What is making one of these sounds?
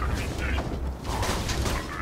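A gun fires in sharp bursts.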